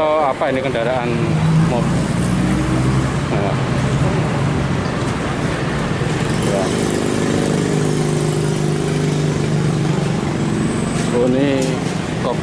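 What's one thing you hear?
A crowd of people chatters.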